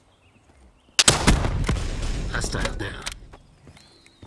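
A gun fires a rapid, loud burst of shots.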